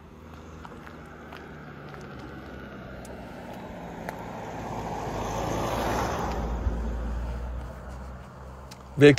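A car drives past on the road, rising and then fading.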